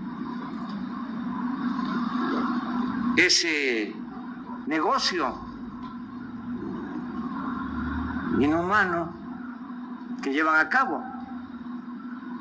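An older man speaks calmly into a microphone through loudspeakers outdoors.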